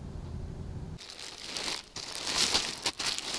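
Plastic packaging crinkles and rustles.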